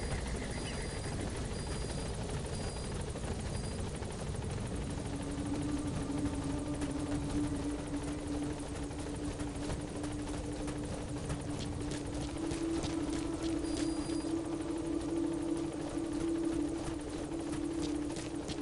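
Footsteps run quickly over soft sand.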